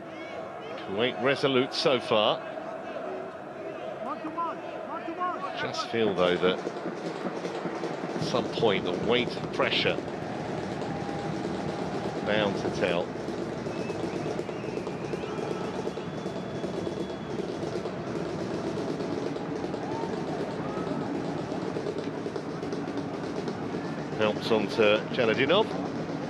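A stadium crowd murmurs and chants steadily in the distance.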